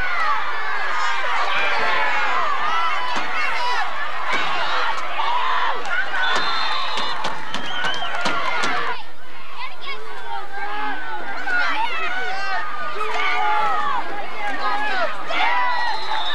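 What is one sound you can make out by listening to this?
A crowd of children and adults shouts and cheers outdoors.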